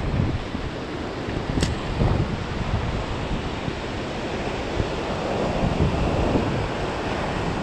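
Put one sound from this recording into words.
Waves crash and wash over rocks close by.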